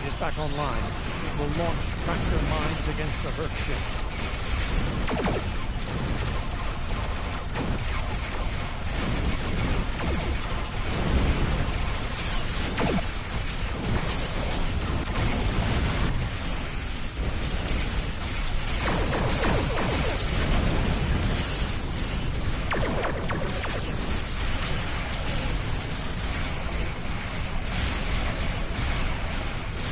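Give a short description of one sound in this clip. Spaceship engines hum steadily.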